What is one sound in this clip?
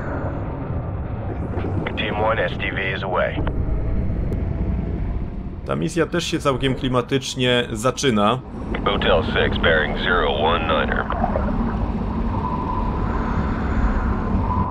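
A submarine engine hums low and steady underwater.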